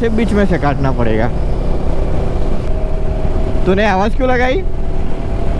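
Wind rumbles loudly against a moving motorcycle.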